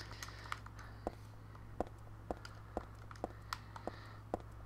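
Footsteps tap on a hard tiled floor at a steady walking pace.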